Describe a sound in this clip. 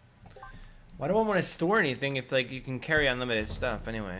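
A man talks with animation through a microphone, close by.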